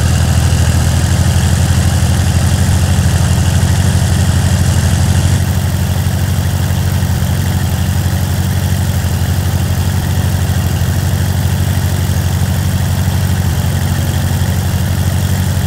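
A tractor engine chugs with a steady low rumble.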